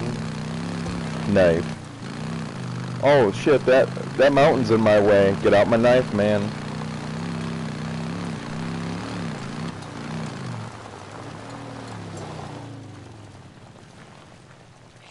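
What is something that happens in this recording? A motorcycle engine hums steadily and fades toward the end.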